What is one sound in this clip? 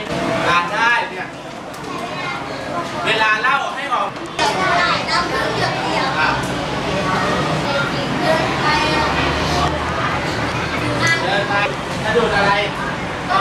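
Children chatter and murmur.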